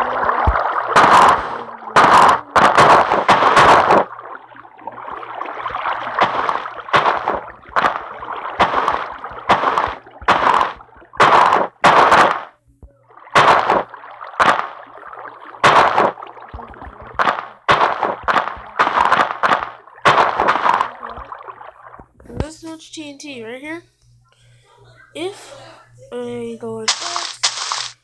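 Blocks are placed with short, soft thuds, one after another.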